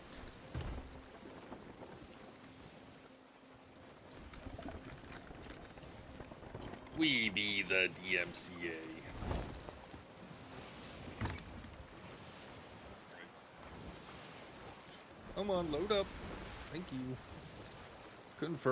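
Ocean waves wash and rumble steadily.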